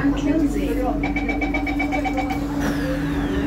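A door warning chime beeps repeatedly.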